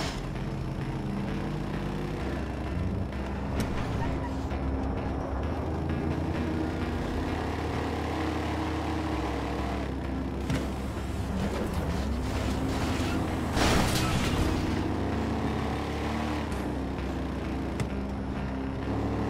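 A car engine hums and revs steadily as it drives.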